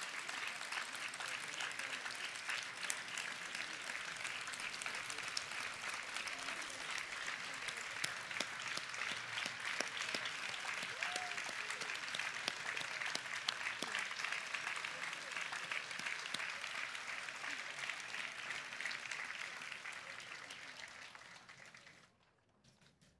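A crowd applauds steadily, and the clapping fades out.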